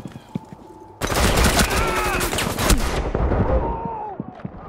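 A pistol fires several sharp shots close by.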